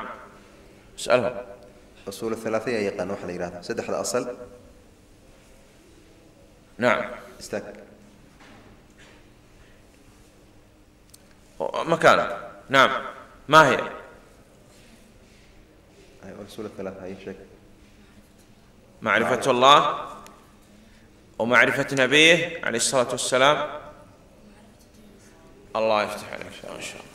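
A man speaks into a microphone in short bursts, with pauses between.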